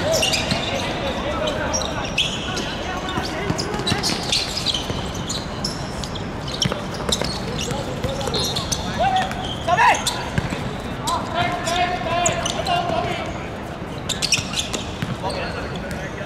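Young men shout and call out to each other across an open outdoor court.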